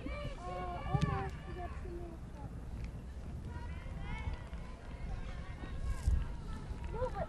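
Young women shout to each other across an open field.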